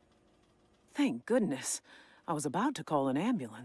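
A young woman speaks with relief, close up.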